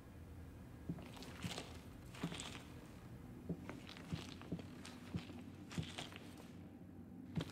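Footsteps thud slowly and evenly on a wooden floor.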